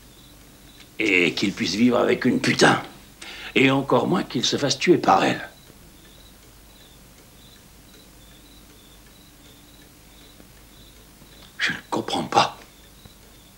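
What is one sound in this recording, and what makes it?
An older man speaks in a low, gruff voice nearby.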